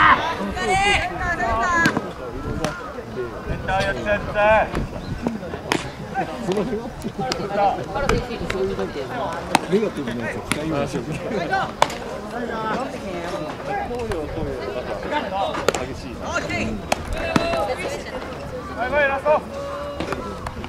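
Young men shout and call out loudly outdoors.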